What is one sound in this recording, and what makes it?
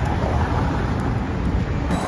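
A car drives past.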